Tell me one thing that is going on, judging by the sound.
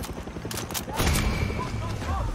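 A magazine clicks into a rifle.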